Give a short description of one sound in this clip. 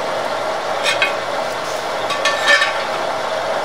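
Metal clinks briefly against metal.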